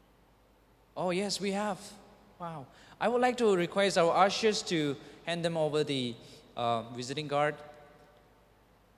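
A young man speaks calmly into a microphone in an echoing hall.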